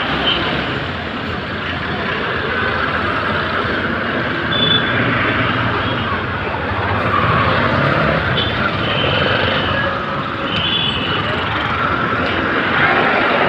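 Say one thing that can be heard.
Busy street traffic rumbles steadily all around.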